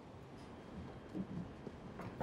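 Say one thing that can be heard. A glass door opens with a soft click.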